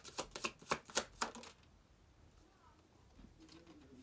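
Playing cards riffle and slap as a woman shuffles them.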